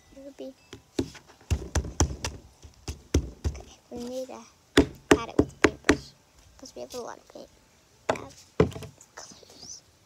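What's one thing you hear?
A plastic cup knocks and taps on a table.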